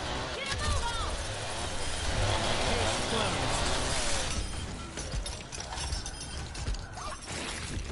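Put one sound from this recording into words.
Energy blasts crackle and whoosh in a video game.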